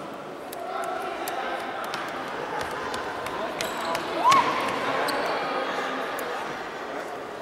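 Children shout and call out across an echoing hall.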